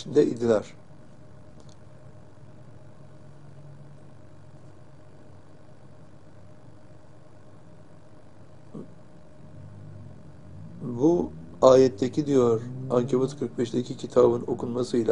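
An elderly man reads out calmly and slowly, close to a microphone, with long pauses.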